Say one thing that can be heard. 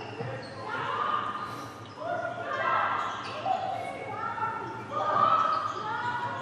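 Sneakers squeak on a hard court in an echoing hall.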